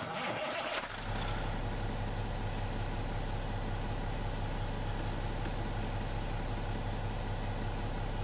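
A big truck engine idles with a steady low rumble.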